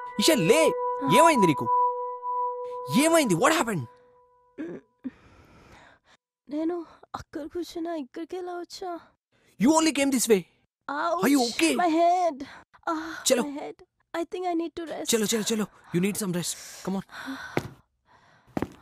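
A young woman speaks tearfully and sobs close by.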